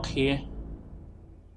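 A man talks briefly into a close microphone.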